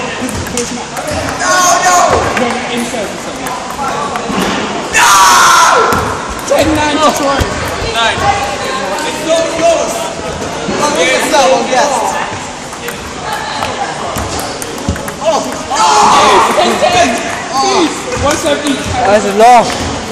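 A table tennis ball clicks back and forth on the table and paddles.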